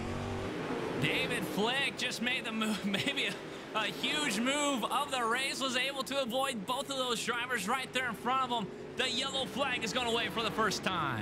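Several racing car engines whine past in quick succession.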